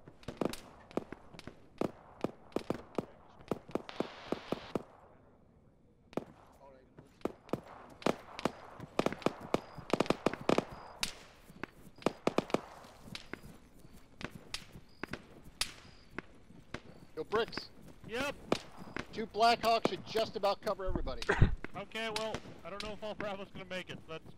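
Footsteps tap quickly across a hard floor and then over grass and pavement.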